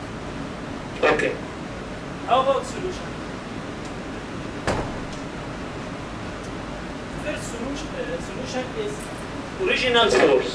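A young man speaks in short bursts in an echoing hall.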